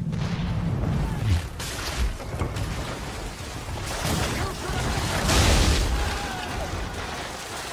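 Cannons fire with deep booms.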